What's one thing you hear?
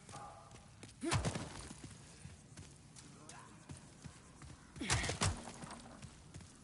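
Wooden debris crashes and clatters as it is smashed.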